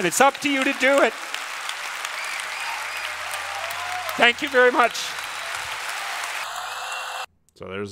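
A large audience laughs in a large hall.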